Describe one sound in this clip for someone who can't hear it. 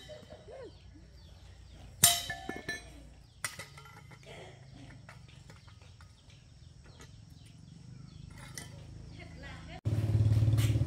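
A tool scrapes and taps on concrete.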